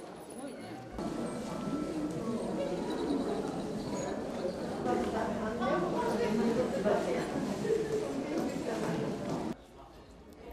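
Visitors chat quietly in a large, echoing hall.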